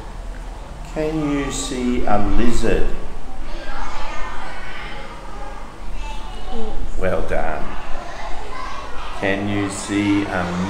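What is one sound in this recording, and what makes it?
A young girl speaks in a high voice, close by.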